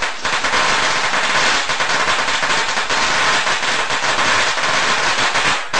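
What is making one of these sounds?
A high-voltage electric arc buzzes and crackles loudly and steadily.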